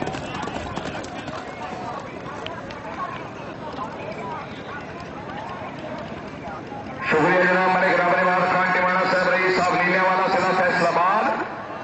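Horse hooves thud on dirt as horses gallop.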